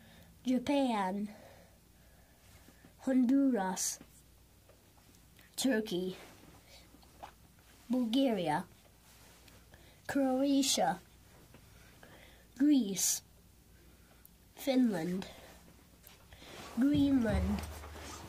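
A young boy says short words out loud, one at a time with pauses between them.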